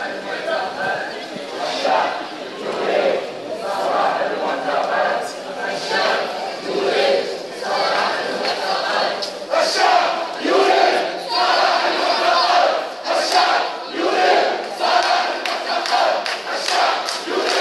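A crowd murmurs and talks nearby.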